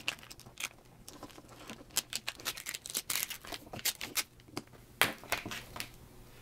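A pick tool scratches and ticks against plastic film.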